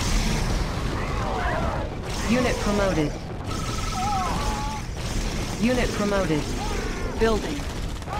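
Laser weapons zap in short, gliding bursts.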